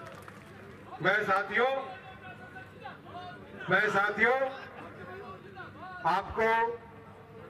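A middle-aged man speaks forcefully into a microphone over loudspeakers outdoors, his voice echoing.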